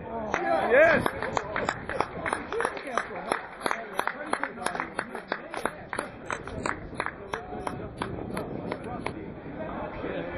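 Spectators clap and cheer from stands around the track.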